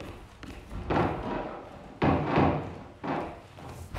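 A heavy wooden door swings shut with a thud.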